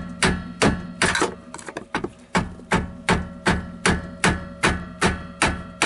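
An engine misfires with sharp, regular knocks about twice a second.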